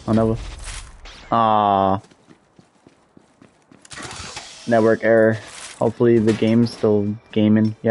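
A metal chest lid clanks open with a hiss of escaping gas.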